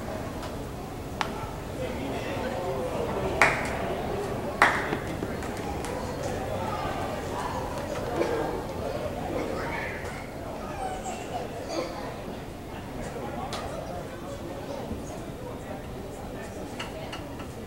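A crowd murmurs and cheers in an open ballpark.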